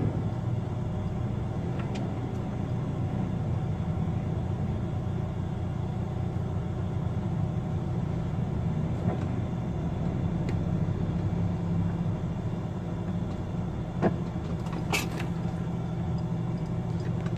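A large diesel engine rumbles steadily.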